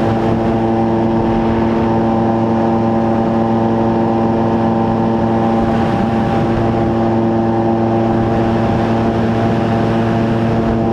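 A drone's motors whine steadily close by.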